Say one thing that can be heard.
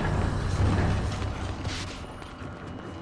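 Video game sound effects rumble low and heavy.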